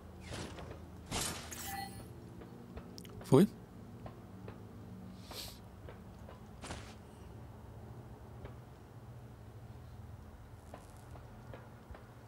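Footsteps clank on a metal floor.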